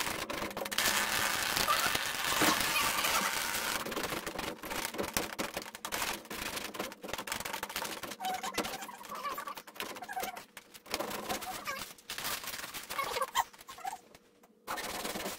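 Hands rustle and scrape against a wooden ceiling frame.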